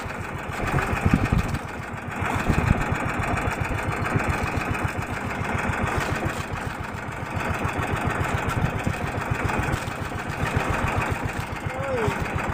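A boat engine chugs rapidly and steadily.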